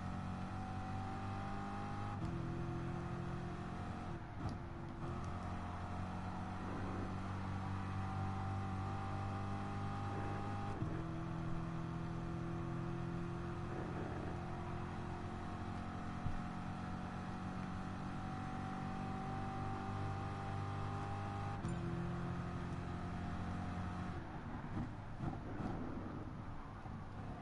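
A racing car engine roars at high revs, climbing in pitch and dropping briefly with each gear change.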